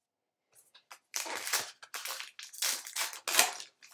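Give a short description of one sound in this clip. Foil card packs crinkle and rustle in hands.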